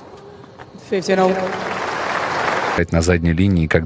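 A crowd applauds in a large stadium.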